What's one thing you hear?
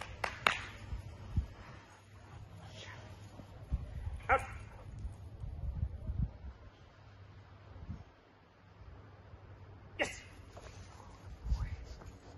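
A dog's paws thud and scuffle on grass.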